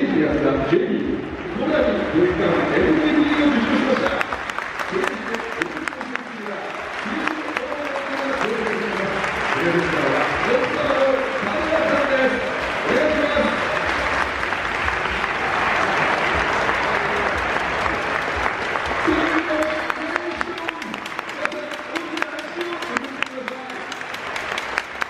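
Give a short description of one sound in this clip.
A stadium crowd claps and cheers.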